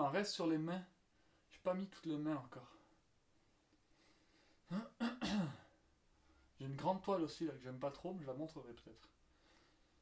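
A young man talks calmly and close by, in short bursts.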